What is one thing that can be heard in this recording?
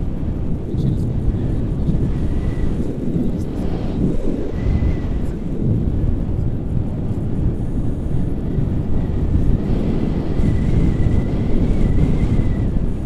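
Strong wind buffets loudly against a microphone.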